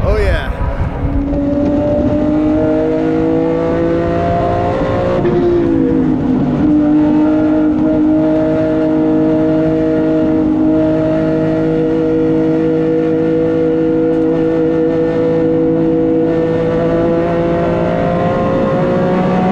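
A race car engine roars loudly from inside the cabin, rising in pitch and dropping as it shifts gear.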